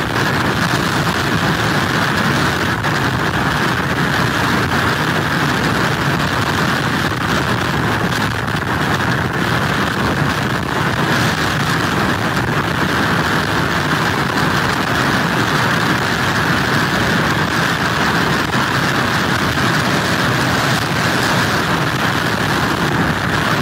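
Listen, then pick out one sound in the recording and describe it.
Heavy surf crashes and roars steadily against a pier.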